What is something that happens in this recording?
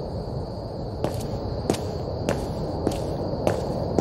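Footsteps tap steadily on a hard pavement.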